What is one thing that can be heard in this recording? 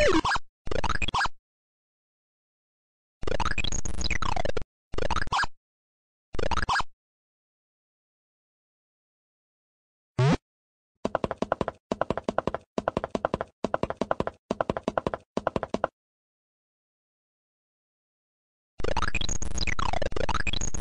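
Electronic game sound effects beep and chirp in short bursts.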